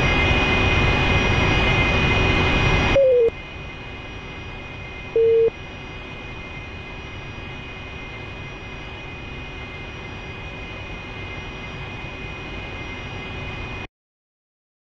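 A jet engine roars steadily inside a cockpit.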